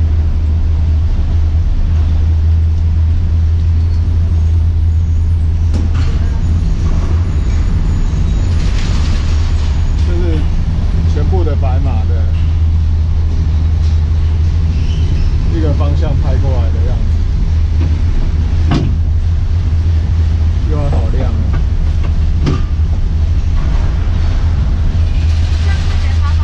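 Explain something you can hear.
A cable car's machinery rumbles steadily.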